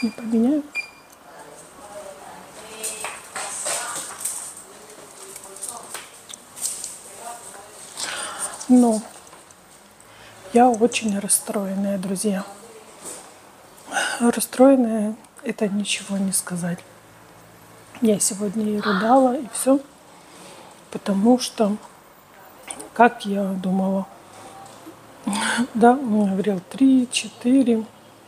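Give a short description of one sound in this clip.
A woman speaks calmly and close by, in short phrases with pauses.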